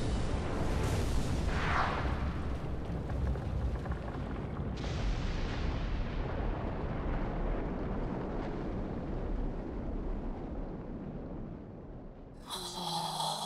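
A volcano erupts with a deep, roaring rumble that slowly fades.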